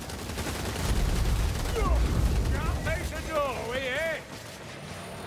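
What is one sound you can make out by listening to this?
Heavy thuds and crashes rumble during a fight.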